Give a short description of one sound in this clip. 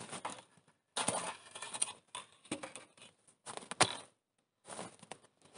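Wooden logs knock and clatter together.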